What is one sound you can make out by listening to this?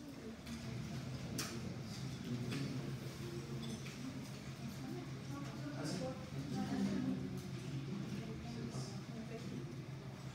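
A fluorescent light hums steadily.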